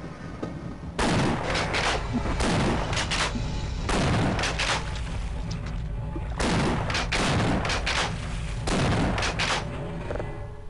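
A gun fires bursts of loud shots that echo.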